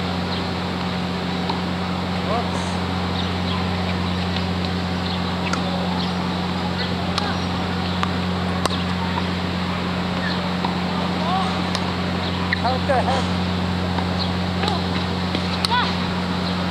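A tennis racket hits a ball in the distance, now and then.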